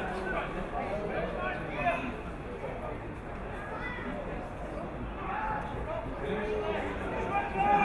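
Men shout to each other across an open playing field.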